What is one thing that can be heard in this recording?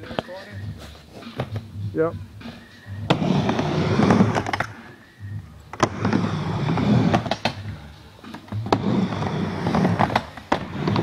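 Skateboard wheels roll and rumble on a wooden ramp.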